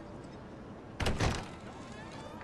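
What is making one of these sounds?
A door bangs open.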